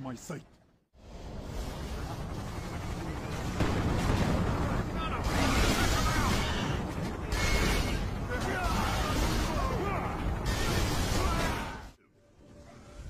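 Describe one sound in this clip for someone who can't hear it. An explosion roars and rumbles loudly.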